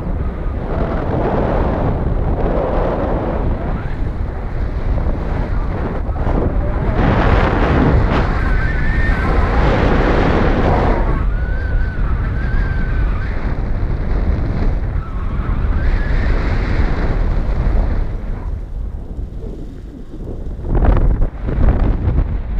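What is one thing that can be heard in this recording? Strong wind rushes and buffets loudly past the microphone.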